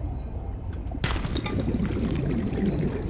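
Bubbles suddenly fizz and pop underwater.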